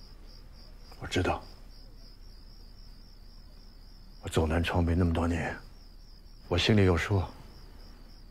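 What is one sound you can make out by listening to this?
A middle-aged man speaks calmly up close.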